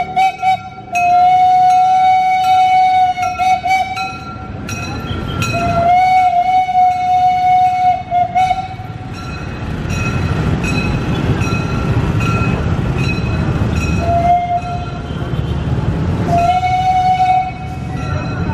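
A steam train whistle blows loudly in long, repeated blasts.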